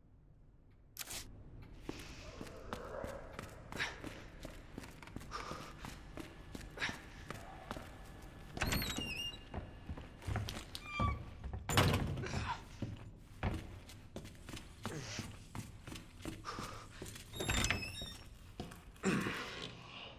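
Footsteps tread quickly across a hard floor.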